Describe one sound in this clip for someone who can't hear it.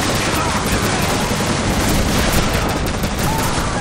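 Gunshots ring out from a pistol.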